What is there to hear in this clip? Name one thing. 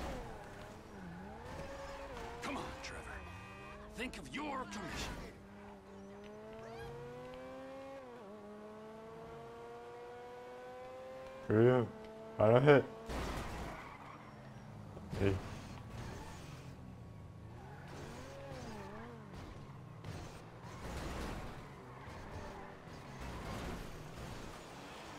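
A car engine revs and roars as it accelerates.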